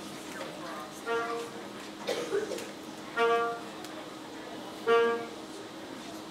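A single wind instrument plays a few short notes.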